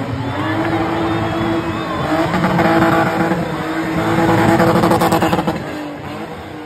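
Car tyres screech on the road.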